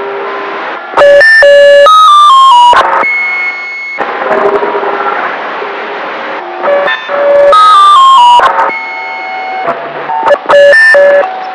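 A radio receiver plays loud beeping digital tones that step in pitch.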